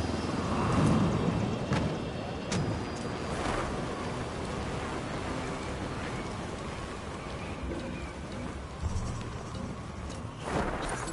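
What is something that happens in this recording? Wind rushes past during a fast free fall.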